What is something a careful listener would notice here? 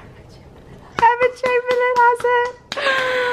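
A young woman laughs loudly in bursts.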